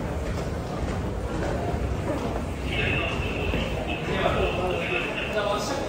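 A crowd of young men and women murmurs nearby.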